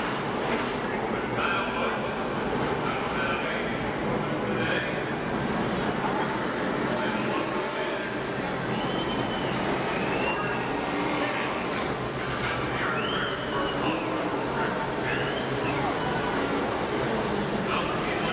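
A race car engine roars and revs.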